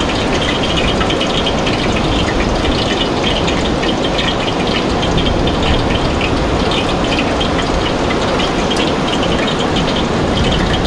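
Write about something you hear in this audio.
A portable gas stove hisses under a pot.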